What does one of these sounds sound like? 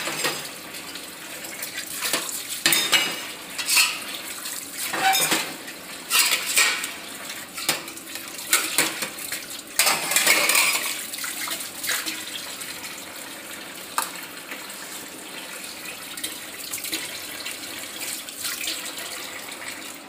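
Metal dishes and cups clatter and clink.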